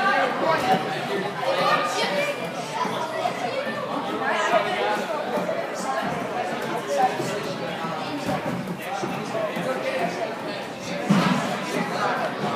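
Hands slap and thump on a pommel horse in quick swings.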